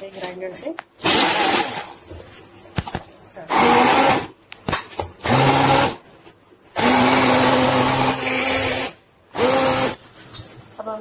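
A hand blender whirs loudly in short bursts.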